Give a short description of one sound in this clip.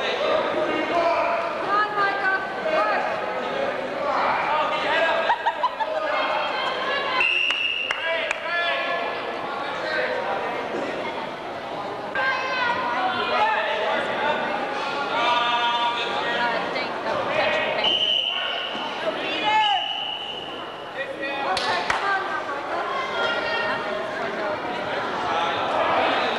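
Spectators shout and cheer loudly in an echoing hall.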